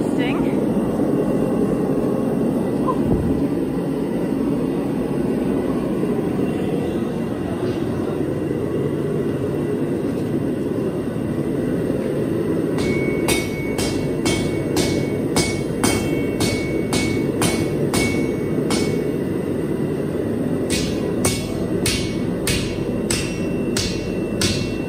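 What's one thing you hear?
A forge fire roars steadily.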